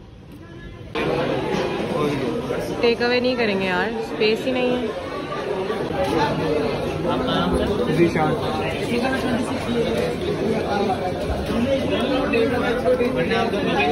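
Men and women chatter in a busy, noisy room.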